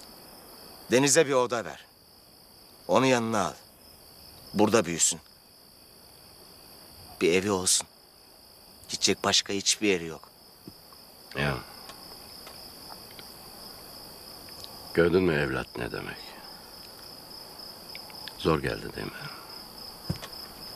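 A middle-aged man speaks quietly in reply.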